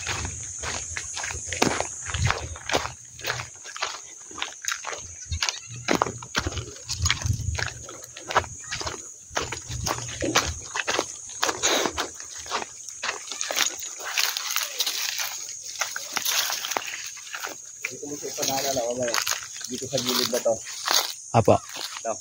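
Footsteps crunch over dry leaves and stony ground.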